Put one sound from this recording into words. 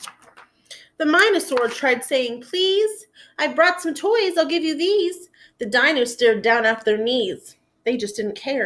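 A young woman reads aloud with expression, close to a microphone.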